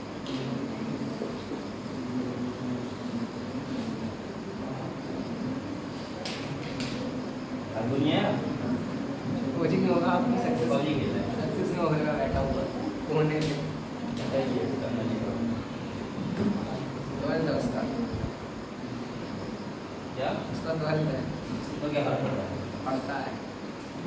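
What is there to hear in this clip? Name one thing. A young man lectures calmly in a room with a slight echo.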